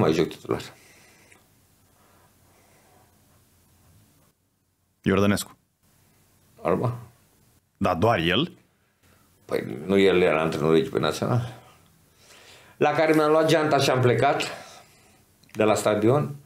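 A middle-aged man speaks with animation close to a microphone, in short bursts with pauses.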